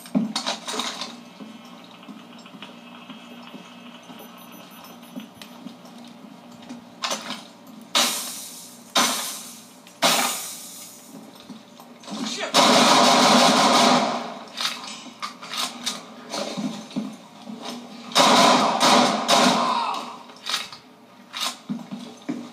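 Gunshots from a video game boom through a television speaker.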